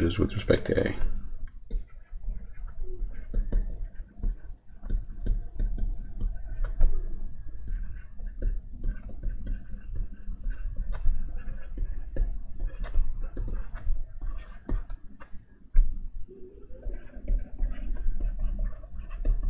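A pen stylus taps and scratches on a tablet.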